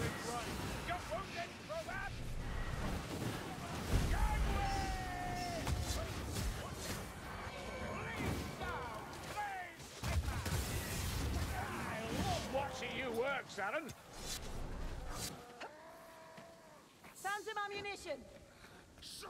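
Creatures snarl and shriek in a fight.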